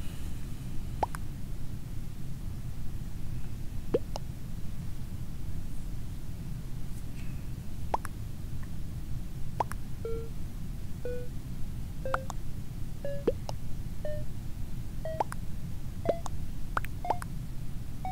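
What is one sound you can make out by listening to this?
Sharp electronic pops sound now and then.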